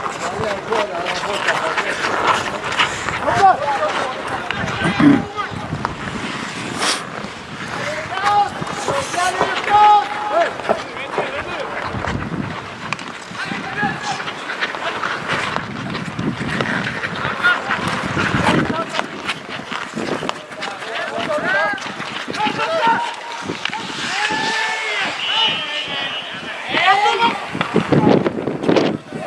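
Ice skates scrape and swish on the ice.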